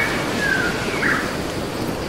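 Small waves lap gently at a shore.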